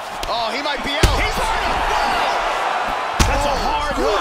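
Punches land with heavy thuds on a body.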